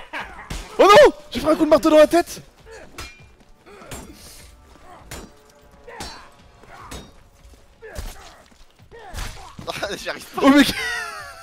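Weapons strike and thud in a fight.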